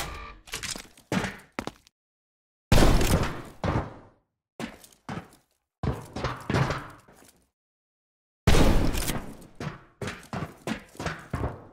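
A rifle fires loud shots in quick bursts, each ringing out with an echo.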